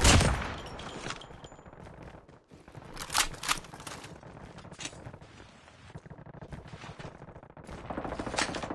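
Footsteps run across grass and climb stairs.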